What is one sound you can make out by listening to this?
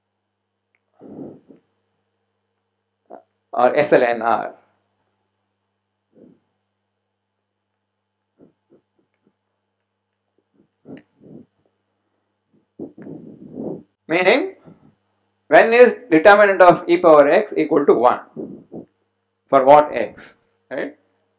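An elderly man lectures calmly through a headset microphone, with pauses.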